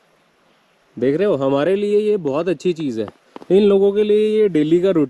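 A young man sings loudly, close by.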